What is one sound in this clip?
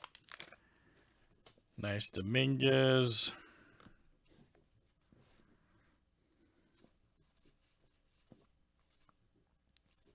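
Trading cards slide and tap against each other as they are flipped through.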